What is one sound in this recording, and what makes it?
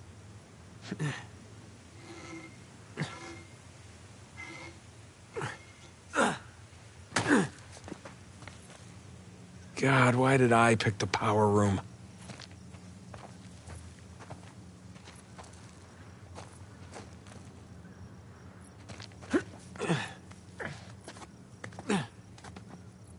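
Hands grab and slap against stone ledges with dull thuds.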